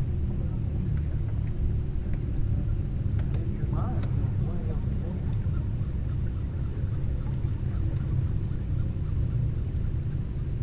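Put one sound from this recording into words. Wind rumbles steadily across open water.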